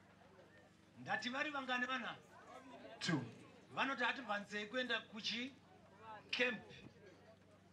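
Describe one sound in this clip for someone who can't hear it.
A man speaks with animation into a microphone, heard through a loudspeaker outdoors.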